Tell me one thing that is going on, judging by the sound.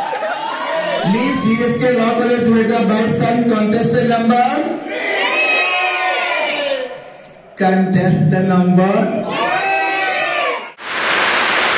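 A group of men and women sing together over loudspeakers.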